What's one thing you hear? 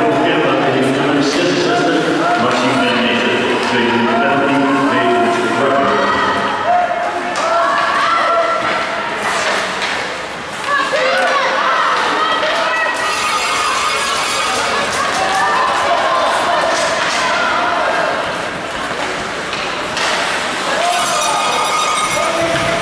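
Spectators chatter and call out in an echoing rink.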